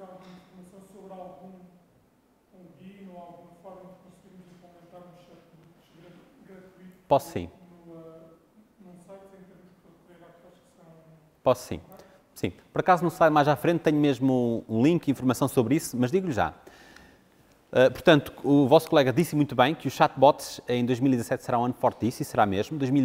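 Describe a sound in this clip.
A man speaks to an audience through a microphone in a large echoing hall.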